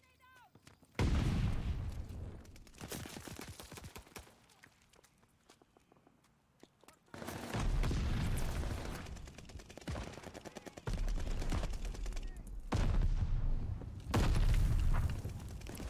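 Rapid gunfire bursts out in loud volleys.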